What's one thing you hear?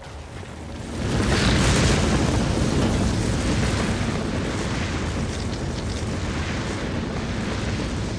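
Wind howls steadily in a snowstorm.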